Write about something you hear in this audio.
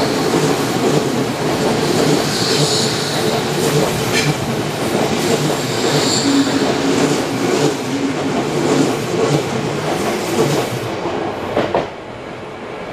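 A passing train rushes and rattles close by, then suddenly falls away.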